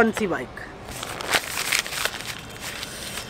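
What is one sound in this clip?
Paper crinkles and rustles in a man's hands.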